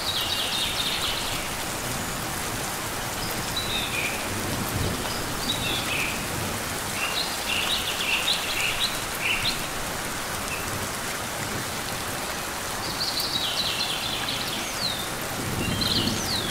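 A small bird chirps in short high bursts.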